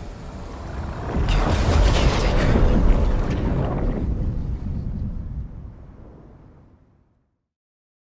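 A huge wall of energy roars with a deep rumble, then fades away.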